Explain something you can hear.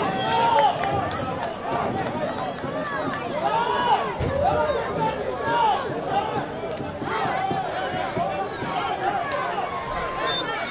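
Footballers shout to each other across an open pitch.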